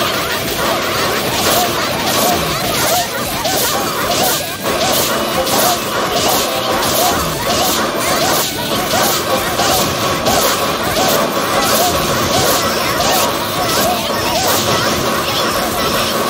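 Game music plays with a steady beat.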